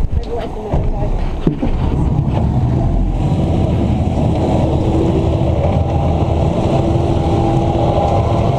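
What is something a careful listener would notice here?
Waves slosh against a boat's hull.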